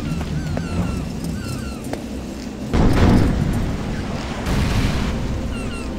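Bats squeak as they flit overhead.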